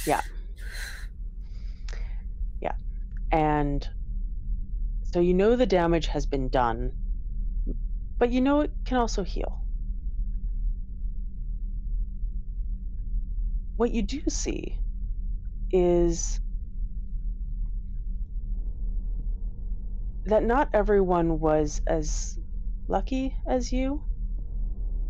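Several young women speak in turns over an online call.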